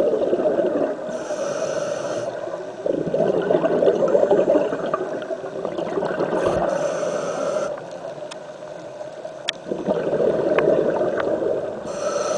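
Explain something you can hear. Air bubbles from a diver's breathing gurgle and burble up close underwater.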